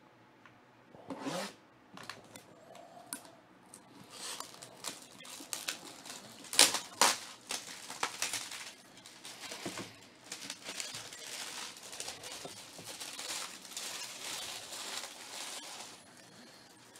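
Plastic wrap crinkles and rustles as hands tear it off a box.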